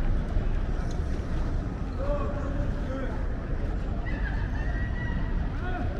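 Men and women chatter faintly in the distance, outdoors.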